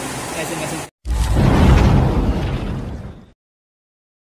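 An explosion booms with a deep rumble that fades away.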